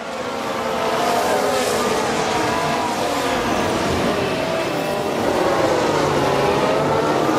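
Racing car engines whine loudly at high revs, rising and falling in pitch.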